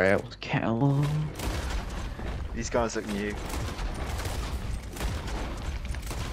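A rifle fires sharp shots in quick succession.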